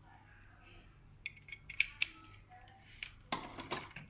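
A plastic plug clicks into a socket.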